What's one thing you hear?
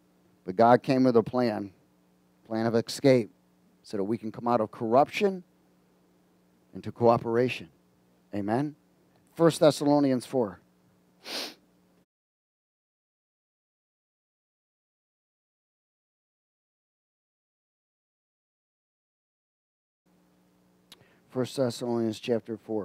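A man speaks with animation into a headset microphone.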